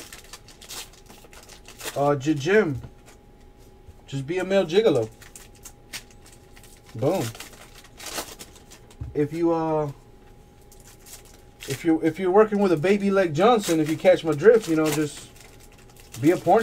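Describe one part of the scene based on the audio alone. Plastic card wrappers crinkle as hands handle them.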